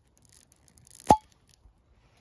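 A cork pops sharply out of a bottle.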